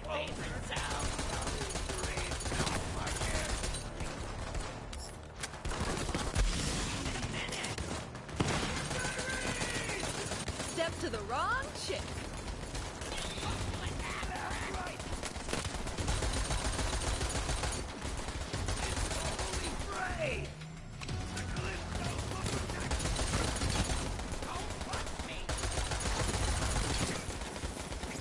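Guns fire in rapid bursts with loud bangs.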